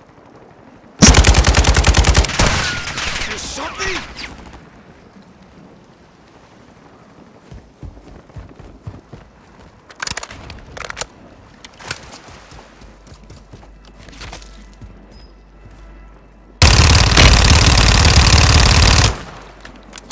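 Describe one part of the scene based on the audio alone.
A rifle fires rapid bursts of loud gunfire.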